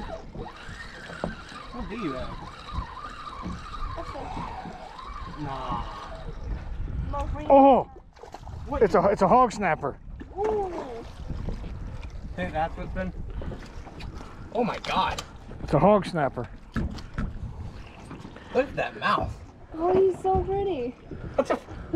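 Water splashes and laps against a boat.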